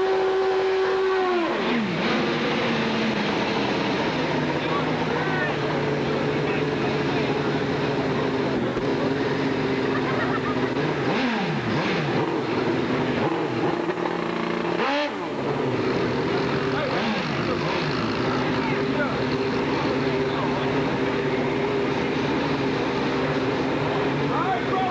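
Motorcycle engines idle and rev loudly throughout.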